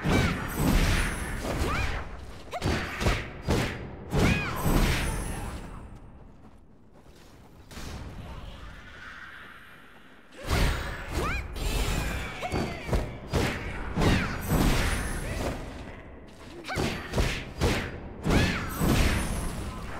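Sword slashes and magic blasts whoosh and crash in a game fight.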